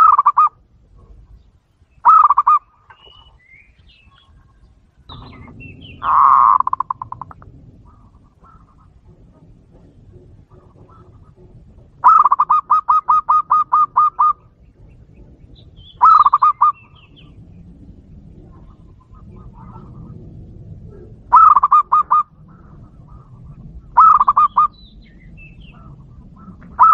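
A dove gives bursts of fast, high staccato cooing trills nearby.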